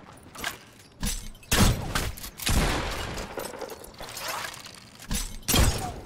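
A bow twangs.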